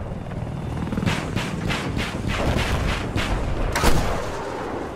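Rapid gunfire bursts from a helicopter cannon.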